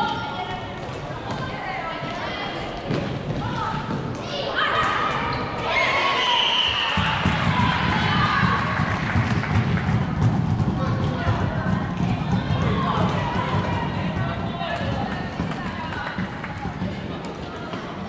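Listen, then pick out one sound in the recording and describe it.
Players' shoes squeak on a hard floor in a large echoing hall.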